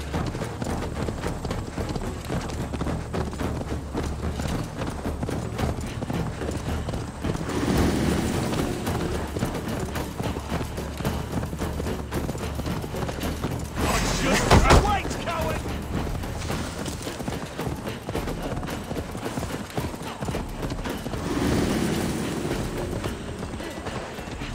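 A horse's hooves thud steadily as it trots along.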